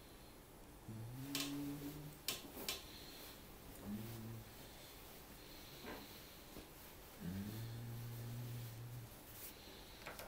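A man speaks briefly and calmly, close to a microphone.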